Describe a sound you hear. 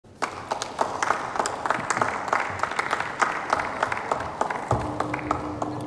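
People in a large hall applaud.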